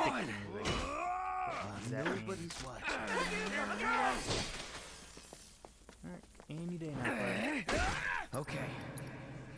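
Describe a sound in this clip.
Blades swing and strike with sharp clashes.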